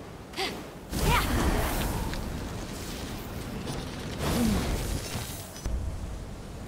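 Large wings whoosh and flap in the air.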